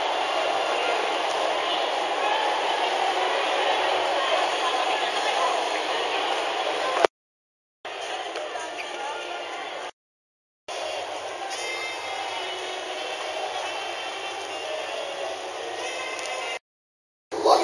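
A crowd of people chatters outdoors in the distance.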